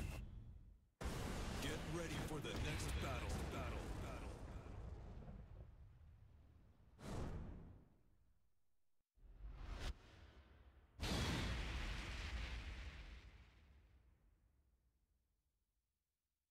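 A deep boom with a long rumbling tail sounds out.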